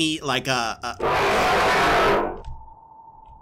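A man screams loudly.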